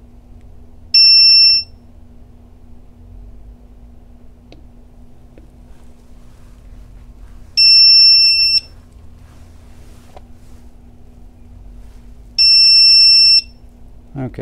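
An electronic device beeps loudly in long steady tones.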